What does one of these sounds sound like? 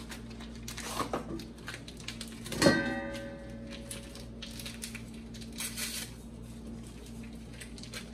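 Utensils clink against a metal bowl.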